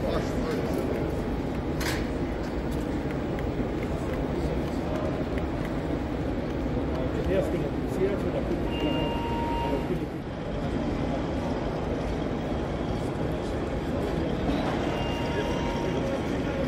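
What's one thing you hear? A model train rumbles along its track.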